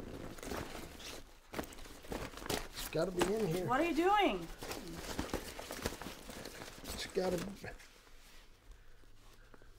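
A bag's fabric rustles as it is handled.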